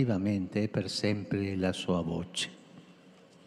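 An elderly man sings a chant through a microphone in a large open space.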